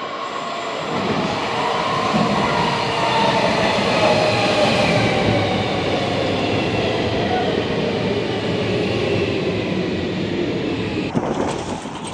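A train pulls into an underground station with a rising rumble.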